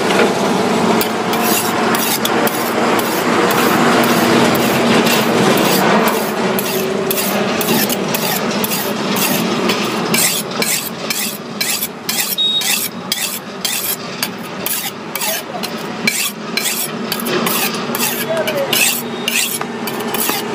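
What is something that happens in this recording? A steel blade scrapes rhythmically against another blade in quick, sharp strokes.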